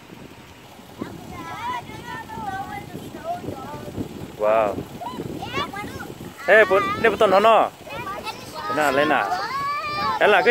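Young children chatter and shout excitedly outdoors.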